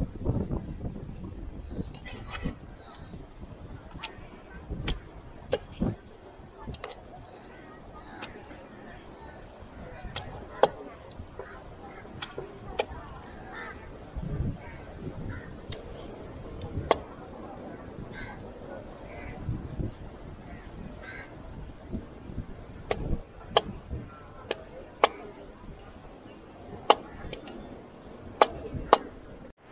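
A knife chops and scrapes on a wooden board.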